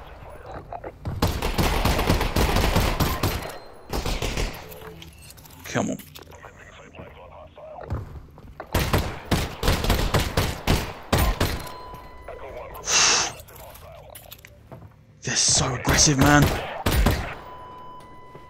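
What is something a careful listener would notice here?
Pistol shots ring out one after another, loud and close.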